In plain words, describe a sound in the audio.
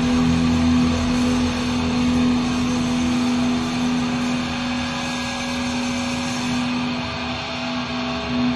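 A rock band plays loudly in a large echoing arena.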